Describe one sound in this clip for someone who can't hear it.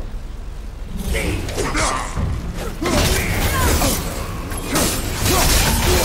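An axe swings and strikes with sharp whooshes.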